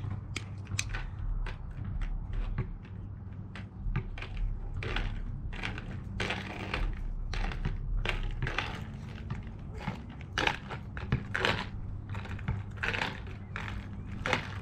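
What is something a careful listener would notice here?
Roller skate wheels roll and scrape across rough pavement nearby.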